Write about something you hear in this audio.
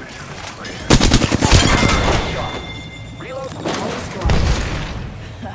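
A shotgun fires with a loud blast in a video game.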